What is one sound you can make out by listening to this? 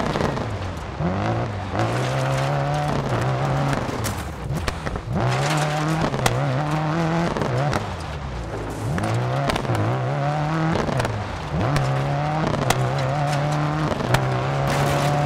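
A rally car engine revs hard, rising and dropping as it shifts gears.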